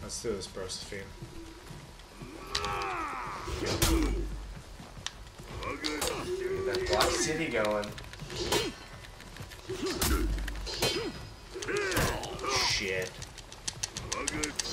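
Two young men talk and react with animation close to a microphone.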